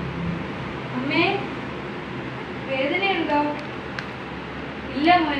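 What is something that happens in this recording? A young woman speaks in short bursts close by.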